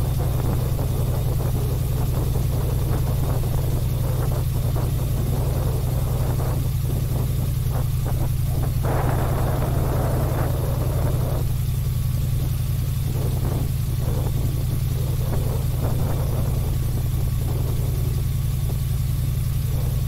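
Wind rushes past outdoors in gusts.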